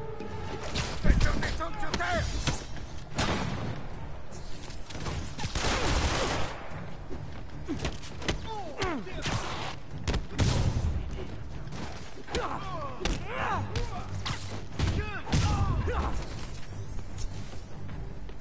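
Punches and blows thud in a game fight.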